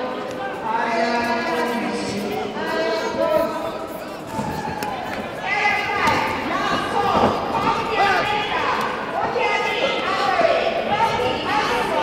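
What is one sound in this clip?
Men shout loudly from around the ring in an echoing hall.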